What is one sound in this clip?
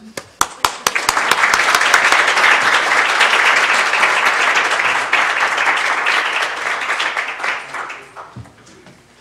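A small crowd applauds in a large room, then the clapping fades.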